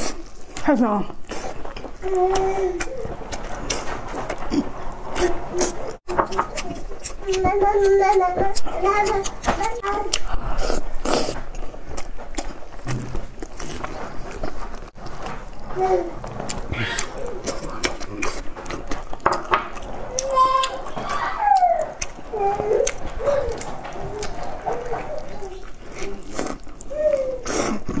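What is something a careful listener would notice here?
Food crackles and squelches as a young woman tears it apart with her hands.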